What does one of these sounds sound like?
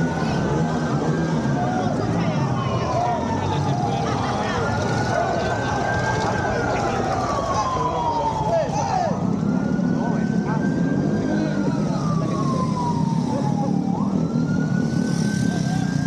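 A crowd of people talks and cheers outdoors.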